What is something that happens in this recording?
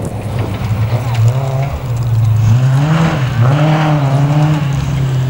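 A rally car engine roars and revs hard in the distance.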